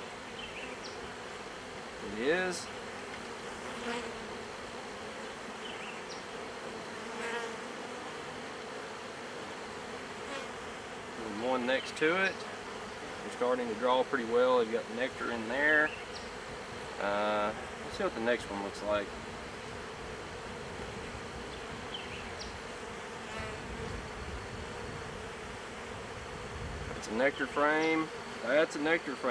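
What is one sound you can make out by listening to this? Bees buzz steadily all around.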